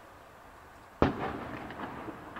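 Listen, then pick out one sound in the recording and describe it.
A firework shell bursts with a loud, echoing boom far off.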